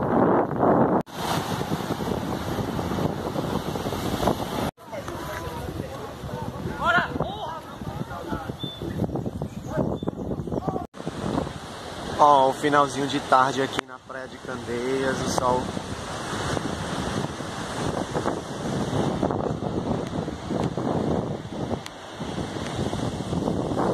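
Waves break and wash onto the shore.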